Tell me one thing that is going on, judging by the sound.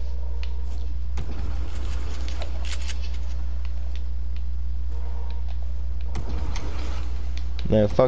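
Building pieces snap into place in quick clicks.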